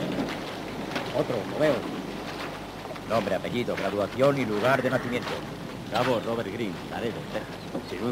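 A crowd of men murmurs and calls out.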